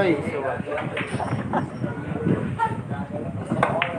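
Billiard balls clack together on a pool table.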